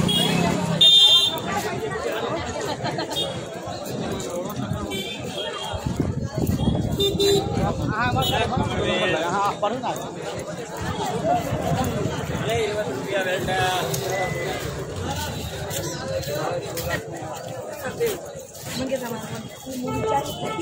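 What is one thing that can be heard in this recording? A crowd of men chatters and shouts outdoors nearby.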